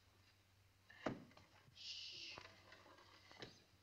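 A wooden chair crashes and clatters.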